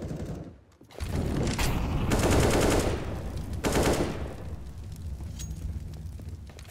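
Fire roars and crackles loudly.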